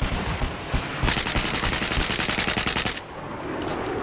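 An assault rifle fires rapidly.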